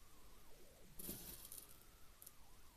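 Glass seed beads rattle in a small dish.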